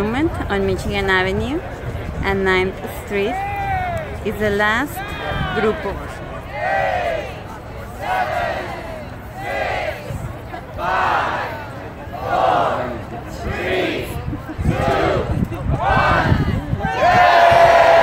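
A crowd of men and women cheers and shouts outdoors.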